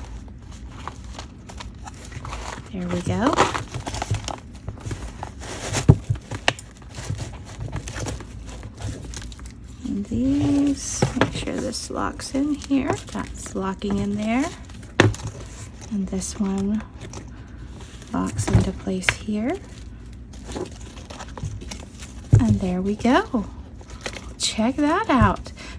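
Stiff paper pages rustle and flap as they are handled.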